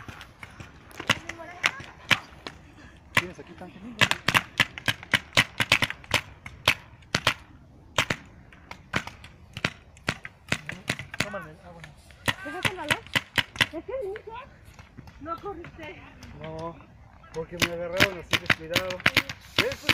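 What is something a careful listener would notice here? Paintball markers fire in rapid popping bursts close by.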